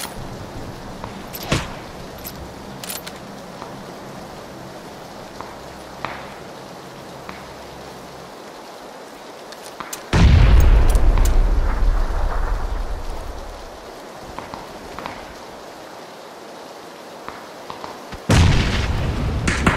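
Footsteps scrape and crunch over rocky ground.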